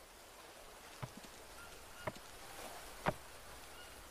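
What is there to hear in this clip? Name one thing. Wooden sticks knock together with sharp clacks.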